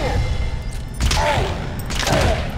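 A silenced gun fires a single muffled shot.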